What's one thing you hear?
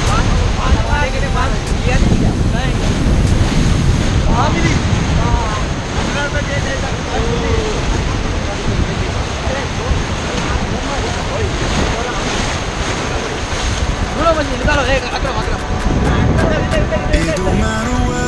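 River rapids rush and splash loudly against a raft.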